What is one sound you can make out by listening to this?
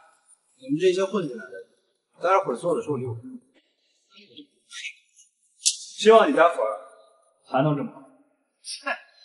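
A young man speaks mockingly, close by.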